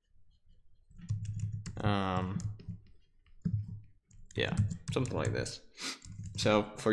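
A young man speaks casually into a nearby microphone.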